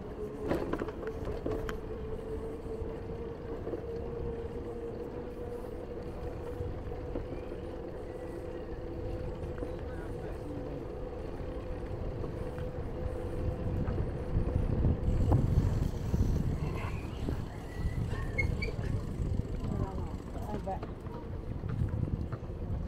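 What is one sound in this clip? Wind blows outdoors with a low rumble.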